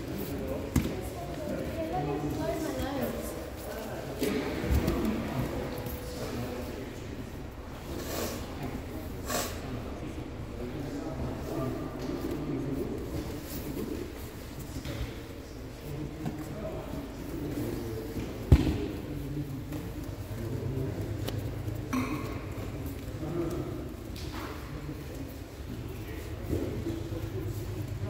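Men and women talk in the background of a large echoing hall.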